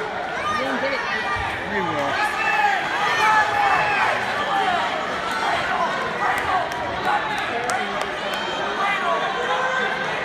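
A crowd of spectators shouts and cheers loudly in a large echoing gym.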